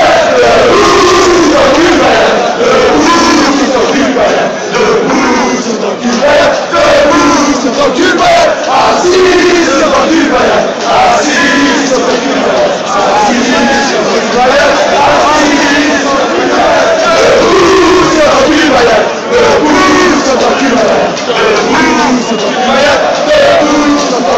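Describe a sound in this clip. A large crowd of men chants and sings loudly close by, outdoors.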